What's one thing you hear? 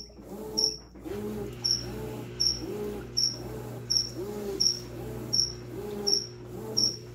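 Water and laundry swish back and forth in a washing machine in a steady rhythm.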